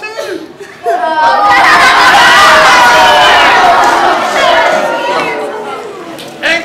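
Young girls laugh loudly nearby.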